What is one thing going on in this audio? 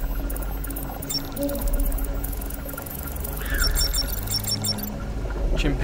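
A handheld electronic device beeps and chirps in quick high tones.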